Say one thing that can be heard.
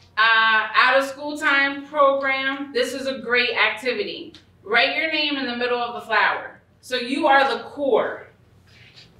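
A woman speaks with animation into a microphone.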